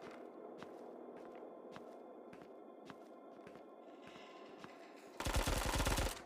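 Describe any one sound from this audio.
Footsteps tap at a steady walking pace.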